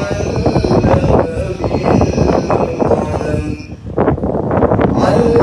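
An elderly man chants into a microphone through a loudspeaker.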